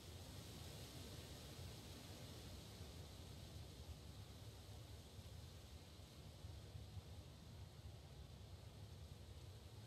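A car engine rumbles steadily at idle.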